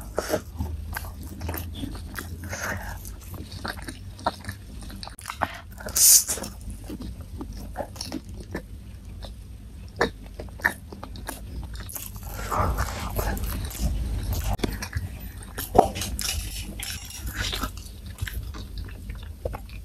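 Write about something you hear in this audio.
A young woman chews fried cassava with cheese close to a microphone.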